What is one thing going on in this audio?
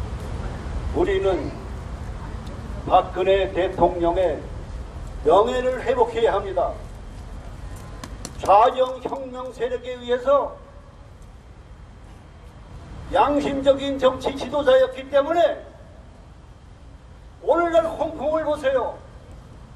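An elderly man speaks forcefully into a microphone through loudspeakers, in short bursts.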